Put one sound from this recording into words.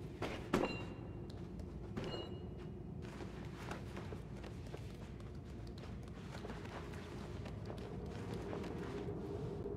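Small footsteps patter across a hard floor.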